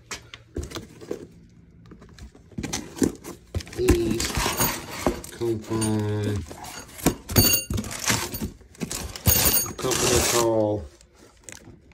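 Cardboard rustles and scrapes as a box is handled up close.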